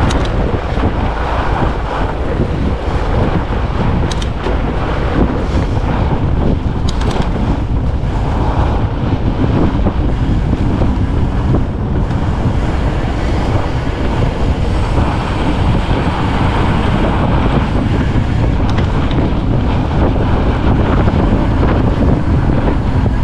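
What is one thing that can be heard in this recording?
Fat bicycle tyres crunch and hum on packed snow.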